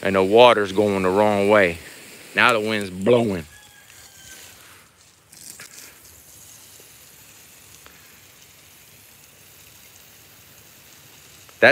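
Water sprays from a hose and patters onto dry grass.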